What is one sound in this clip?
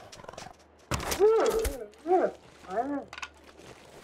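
A wolf yelps and whimpers in pain.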